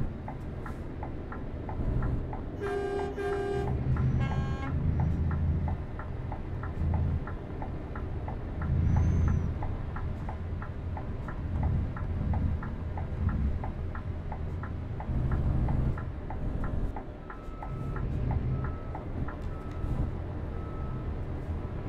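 A truck engine rumbles steadily, swelling and easing.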